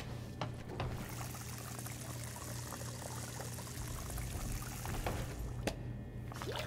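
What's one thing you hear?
Water pours from a tap into a basin with a steady splashing hiss.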